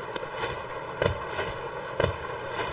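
A small game character lands with soft thuds.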